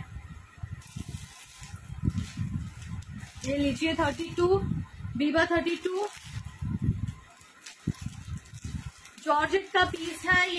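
A plastic wrapper crinkles and rustles in hands.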